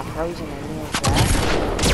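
A gun fires in a loud burst.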